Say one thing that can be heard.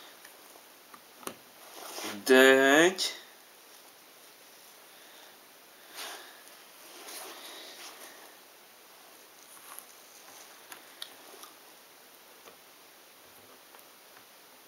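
Jigsaw puzzle pieces click and rustle softly on a tabletop.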